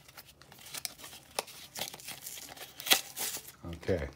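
A plastic package crinkles and clicks close by.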